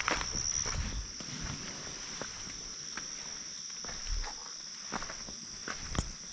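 Footsteps crunch and clack on loose river stones.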